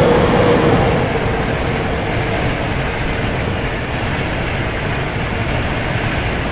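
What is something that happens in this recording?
A train rumbles steadily past close by.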